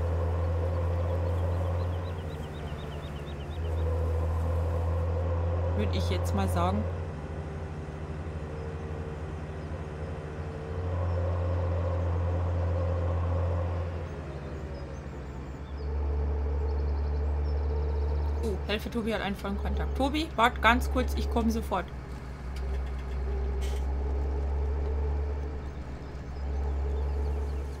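A tractor engine drones steadily, growing louder and quieter by turns.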